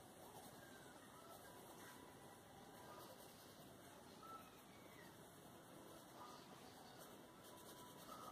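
A colored pencil scratches softly across paper.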